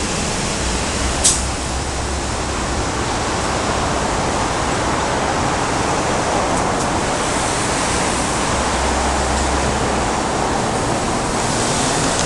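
City traffic hums steadily on a road below.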